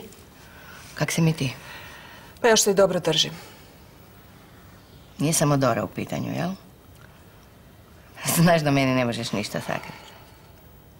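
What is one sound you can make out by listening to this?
A middle-aged woman speaks with feeling close by.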